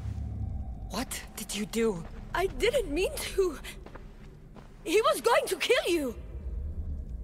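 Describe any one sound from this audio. A woman speaks urgently, close by.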